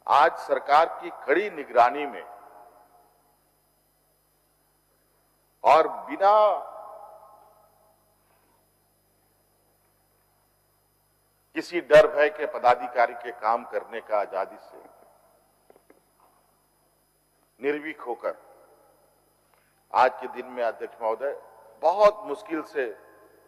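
A man speaks forcefully into a microphone in a large echoing hall, with long pauses.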